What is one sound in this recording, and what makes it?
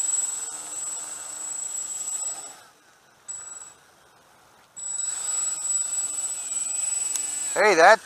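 A model plane's small electric motor whines at a high pitch, cutting out briefly and then revving.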